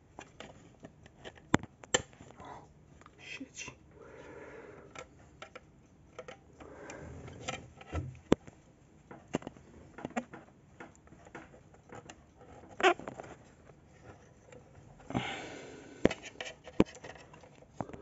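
Wires rustle and click as a hand moves them about.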